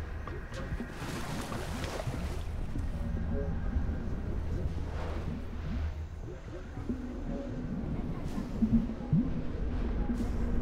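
Water rushes and gurgles steadily.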